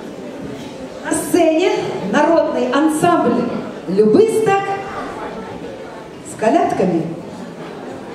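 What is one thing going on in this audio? A child speaks with animation into a microphone, heard over loudspeakers in an echoing hall.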